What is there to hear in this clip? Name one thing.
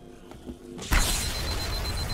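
An energy blast bursts with a loud, crackling roar.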